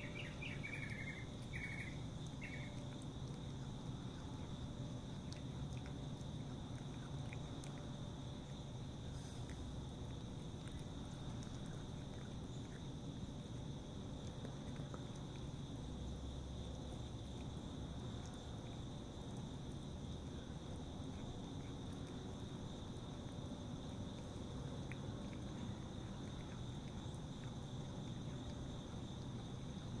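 A cat eats wet food from a metal tray, chewing and licking.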